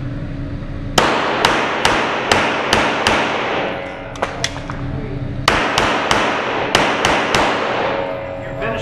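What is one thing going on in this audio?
A pistol fires rapid shots that echo in an enclosed range.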